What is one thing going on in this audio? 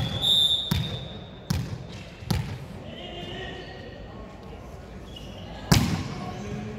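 A volleyball is hit with sharp smacks in a large echoing hall.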